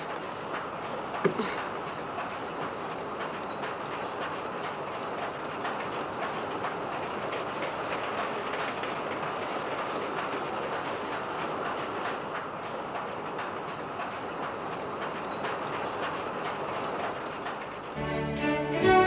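A train rattles and rumbles steadily as it rolls along.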